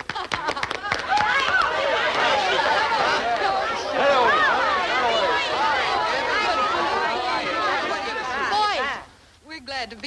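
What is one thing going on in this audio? A crowd of men and women talk and shout excitedly all at once.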